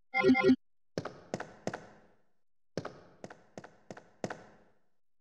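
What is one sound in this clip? Footsteps knock on a hard floor.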